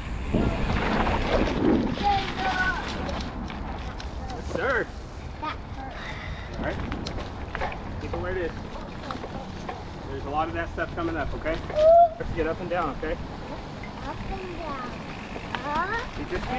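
Tyres roll and crunch over dry leaves and dirt.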